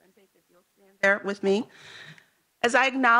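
A woman speaks through a microphone in a large room.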